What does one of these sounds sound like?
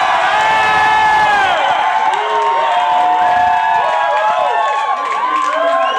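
A man talks loudly into a microphone through loudspeakers.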